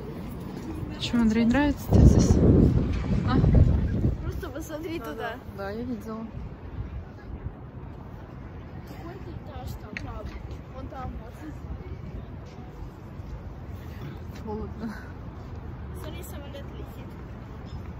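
A woman talks close by, calmly.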